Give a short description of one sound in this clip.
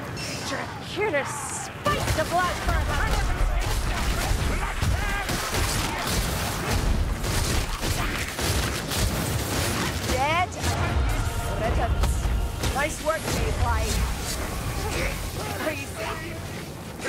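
Monsters screech and snarl as they attack.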